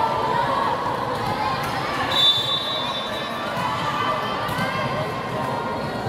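A volleyball thumps as a player hits it.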